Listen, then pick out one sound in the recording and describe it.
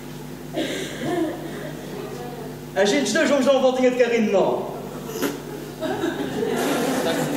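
Men speak with animation through microphones in a large echoing hall.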